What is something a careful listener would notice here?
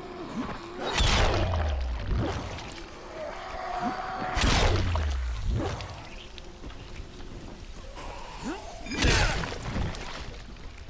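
Heavy blows thud into bodies with wet, splattering hits.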